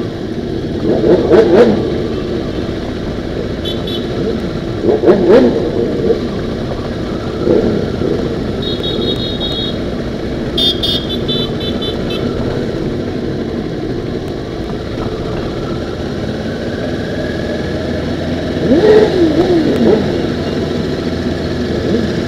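Motorcycle engines rumble steadily close by.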